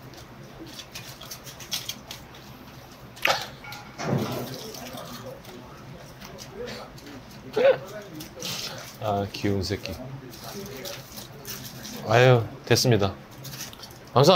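Foil crinkles and rustles.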